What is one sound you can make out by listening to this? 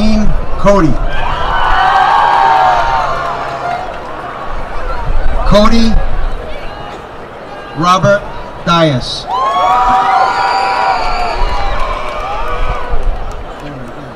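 A crowd cheers and whoops in short bursts.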